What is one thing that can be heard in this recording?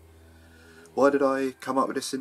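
A middle-aged man speaks close to a microphone.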